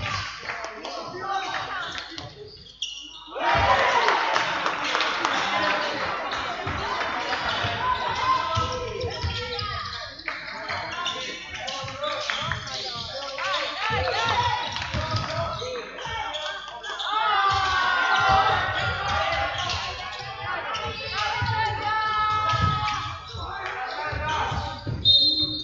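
Basketball shoes squeak sharply on a hall floor.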